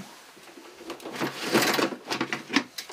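A plastic barrel lid knocks and rattles as it is handled.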